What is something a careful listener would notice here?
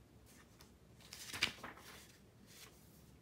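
Paper rustles as a hand moves the sheets.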